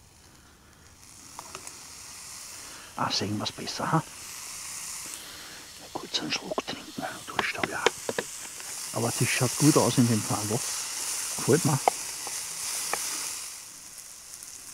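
Meat sizzles in a frying pan.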